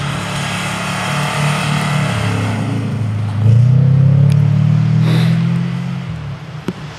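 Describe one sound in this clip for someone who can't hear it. A flat-four car engine revs hard.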